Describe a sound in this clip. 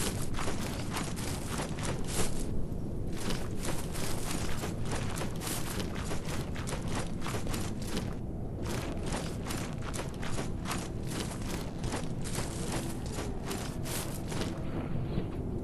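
Quick footsteps run through grass and undergrowth.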